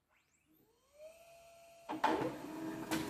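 A printer whirs as it starts up.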